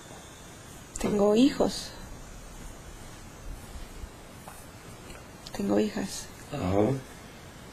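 A young woman speaks in short, halting bursts close by.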